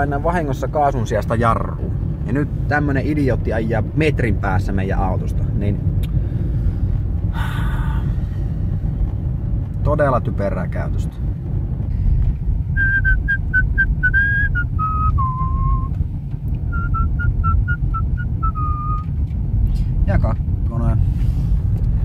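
A car rumbles steadily along a road, heard from inside.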